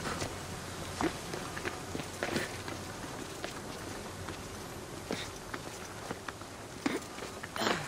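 Hands grab and scrape against a stone wall in quick, scattered knocks.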